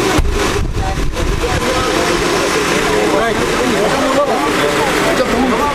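A crowd of men and women chatters outdoors nearby.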